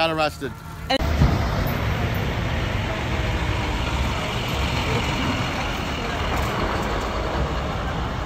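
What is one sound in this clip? A heavy truck engine rumbles and idles nearby outdoors.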